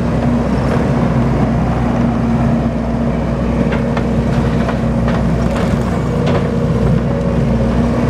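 A tracked loader's diesel engine rumbles steadily close by.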